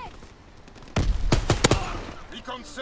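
A rifle fires a rapid burst of loud shots.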